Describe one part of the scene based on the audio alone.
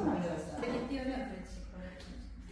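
A woman speaks quietly nearby.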